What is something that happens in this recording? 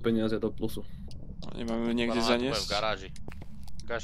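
A man speaks close to a microphone with animation.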